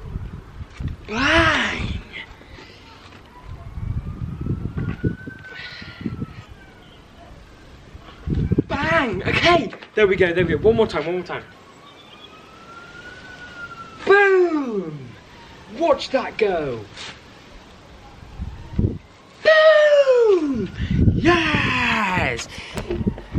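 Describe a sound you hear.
A young man talks and exclaims loudly close by.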